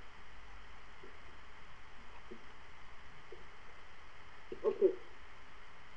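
A woman speaks quietly and in short bits over an online call.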